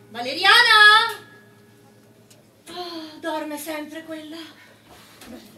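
Young women sing on a stage, heard from across a room.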